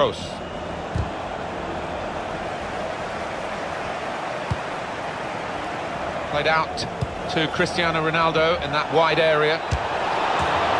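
A football is kicked with dull thuds.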